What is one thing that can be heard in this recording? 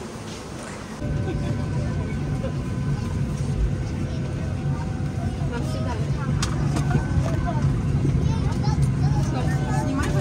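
An aircraft cabin hums with a steady low drone.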